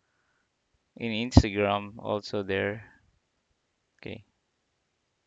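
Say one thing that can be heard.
A man speaks briefly into a microphone, close by.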